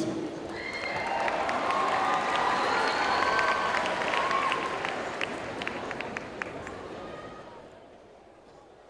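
A large audience applauds in a big echoing hall, then the clapping fades.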